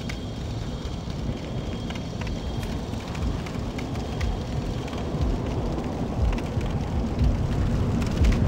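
Armoured footsteps clank at a run.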